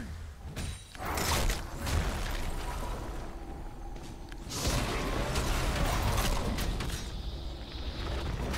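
Magic spell effects whoosh and crackle in bursts.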